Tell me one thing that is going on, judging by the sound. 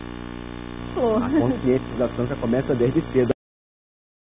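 A man speaks clearly on a microphone.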